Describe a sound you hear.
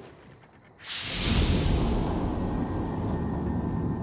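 Flames burst up with a loud roaring whoosh.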